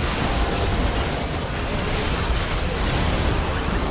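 A large monster roars as it is defeated.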